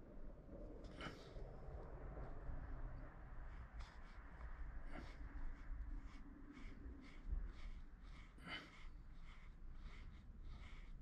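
A wooden tool scrapes across oil-based modelling clay in short strokes.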